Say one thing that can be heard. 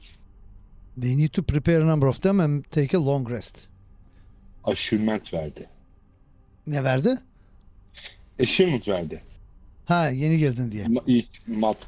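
A man talks with animation through a headset microphone over an online call.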